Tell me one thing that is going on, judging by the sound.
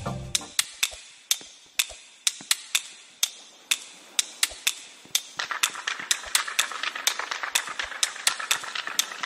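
Short, sharp game sound effects tick rapidly as a character jumps.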